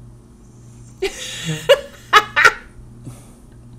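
A young man laughs heartily over an online call.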